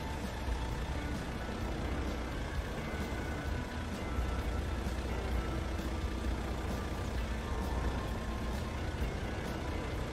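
A heavy engine rumbles steadily.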